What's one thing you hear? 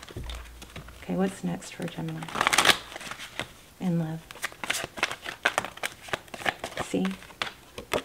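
Cards flick and rustle as they are shuffled by hand.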